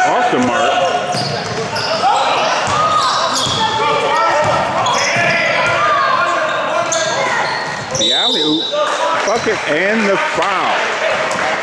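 Spectators and players shout and call out in a large echoing gym.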